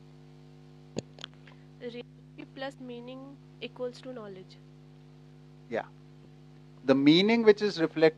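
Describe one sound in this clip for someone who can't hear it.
A young woman speaks into a handheld microphone, with pauses.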